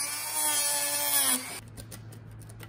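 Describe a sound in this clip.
A rotary tool whines at high speed.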